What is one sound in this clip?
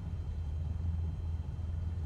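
A small plane's engine idles with a low, steady drone.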